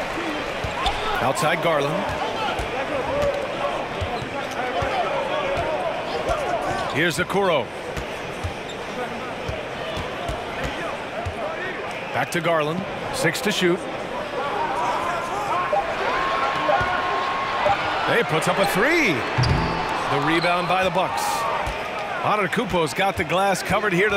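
A crowd murmurs and cheers in a large arena.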